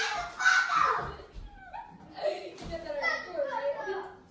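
A young person laughs.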